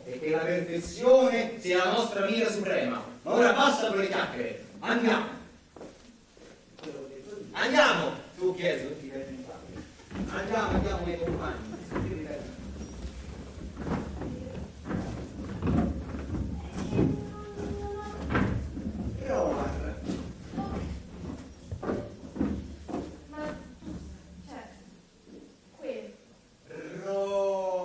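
Men speak loudly and with animation in a large echoing hall.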